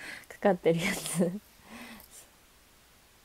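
A young woman laughs softly close to a microphone.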